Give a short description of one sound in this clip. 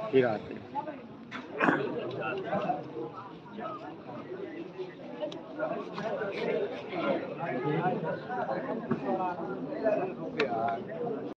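A large crowd of men murmurs and chatters close by in an echoing room.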